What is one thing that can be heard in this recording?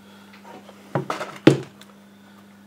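A metal device knocks and clatters as it is handled.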